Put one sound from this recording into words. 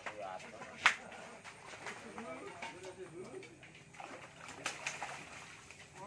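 A hooked fish thrashes and splashes at the surface of pond water.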